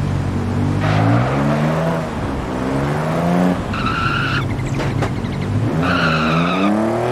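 A car engine revs up sharply in short bursts.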